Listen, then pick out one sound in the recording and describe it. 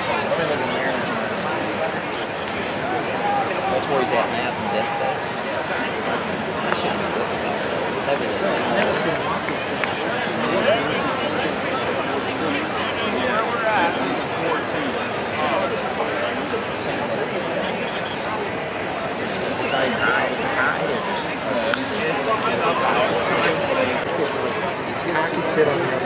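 A large crowd murmurs and chatters in an open stadium.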